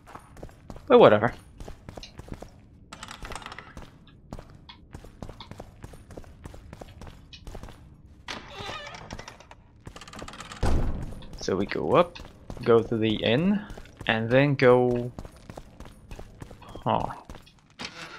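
Footsteps tread on stone steps.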